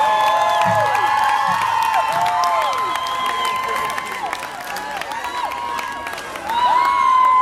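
A crowd cheers loudly in a large hall.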